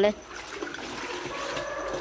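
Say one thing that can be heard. Liquid pours from a scoop into a bucket.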